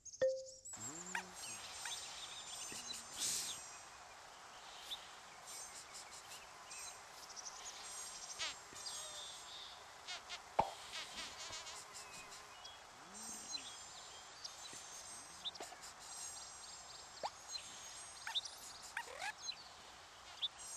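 Small creatures chirp and squeak in short, high bursts.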